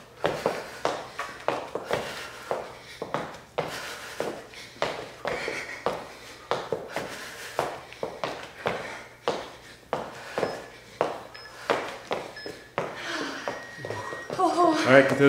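Sneakers thump and squeak quickly on a hard floor.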